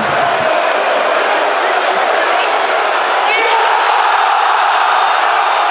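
A large stadium crowd roars and chants loudly throughout.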